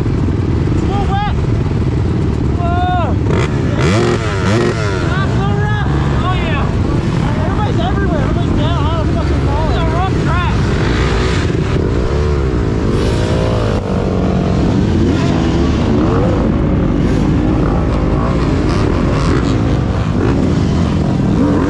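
Four-stroke dirt bike engines rev up and down as the bikes struggle up a climb.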